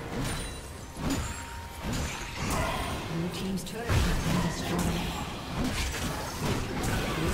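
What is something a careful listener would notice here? Magic spells crackle and blast in a fast battle.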